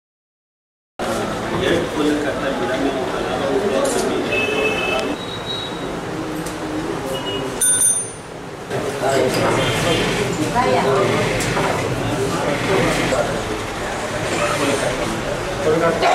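Several men and women talk and murmur nearby.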